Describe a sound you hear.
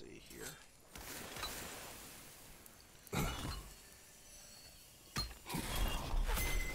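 A magical beam hisses and hums against a stone door.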